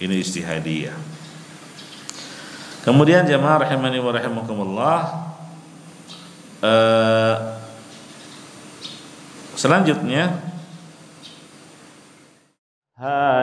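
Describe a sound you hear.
A man speaks slowly and calmly into a microphone, with a slight echo.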